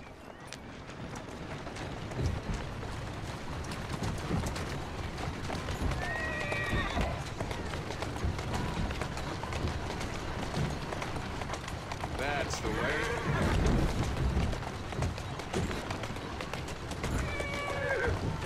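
A horse-drawn carriage rumbles along a cobbled street.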